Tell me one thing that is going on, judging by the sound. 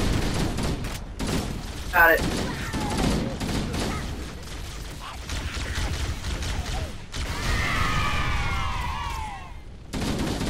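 Explosions from a video game boom.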